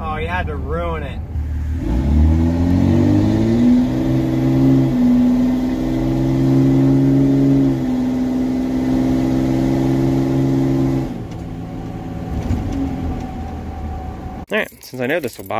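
A truck engine hums and revs steadily.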